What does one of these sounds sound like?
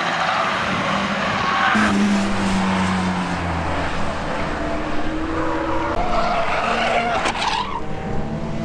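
A racing car engine roars past at high revs.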